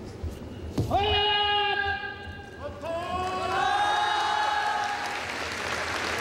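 A man lets out loud, drawn-out shouts.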